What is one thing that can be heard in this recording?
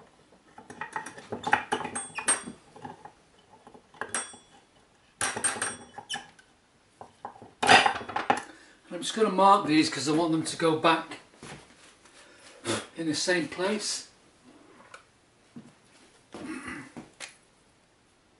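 Metal parts clink and rattle close by.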